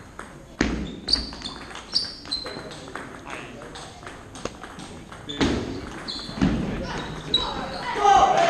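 A table tennis ball clicks back and forth across a table in a large echoing hall.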